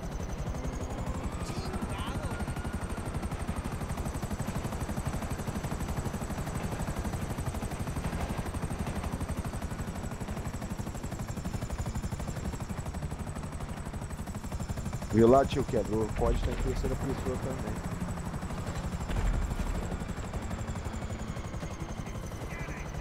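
Helicopter rotor blades thump steadily and loudly.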